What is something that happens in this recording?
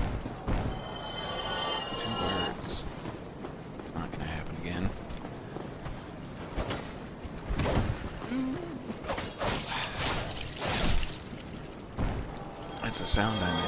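Armoured footsteps clank and thud on stone.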